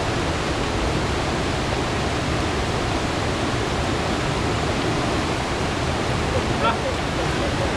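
Water splashes as a man wades through a stream.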